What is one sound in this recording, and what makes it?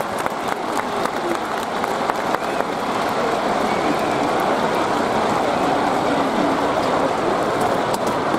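A large stadium crowd murmurs and cheers steadily in the open air.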